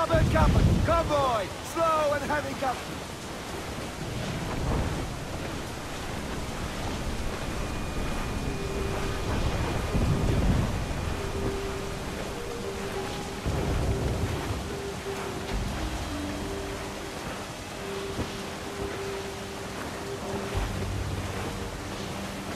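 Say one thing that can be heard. Wind blows steadily over open sea.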